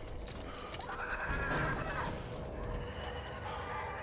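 Metal gate doors creak as they swing open.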